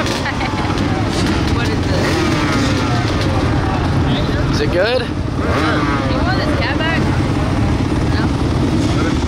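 Several dirt bike engines idle and rev nearby.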